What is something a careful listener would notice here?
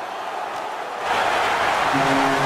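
An arena crowd erupts into a loud cheer.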